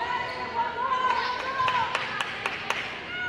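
A volleyball is struck with a loud smack.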